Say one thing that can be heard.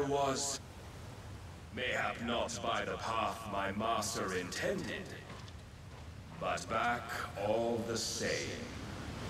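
A man speaks in a low, weary voice.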